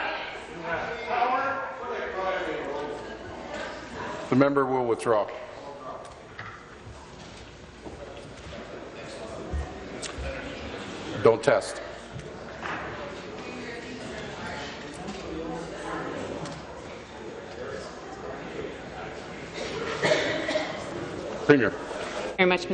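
A man speaks formally through a microphone in a large hall.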